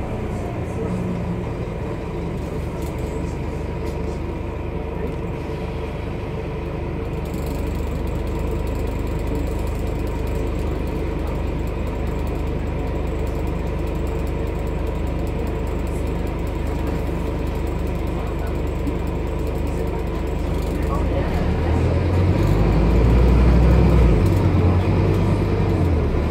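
A bus rattles and hums as it drives along.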